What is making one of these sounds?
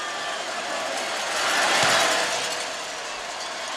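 A large stadium crowd cheers and roars, then dies down.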